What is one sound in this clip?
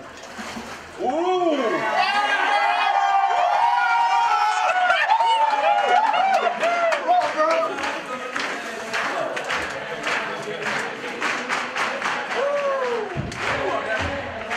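Young men cheer and shout with excitement.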